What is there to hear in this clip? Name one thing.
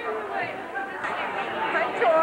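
An audience laughs and chatters.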